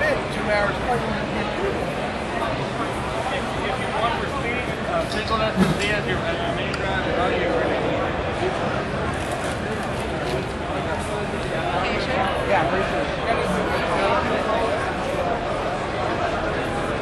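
A crowd of young men and women chatter loudly all around in a large echoing room.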